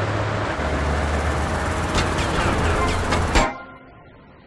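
A tank engine rumbles steadily and deeply.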